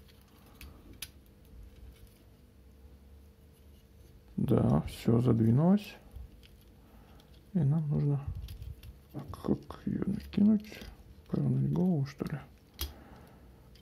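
Plastic toy parts click softly as they are moved and snapped into place.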